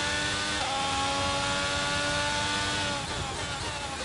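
A racing car engine whines loudly, dropping in pitch as it slows.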